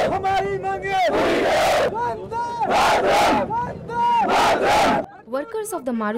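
A large crowd of men chants slogans loudly in unison, outdoors.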